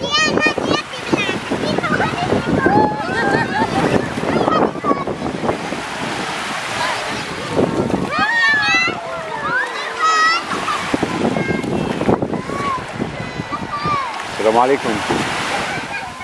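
Children shout and call out playfully close by.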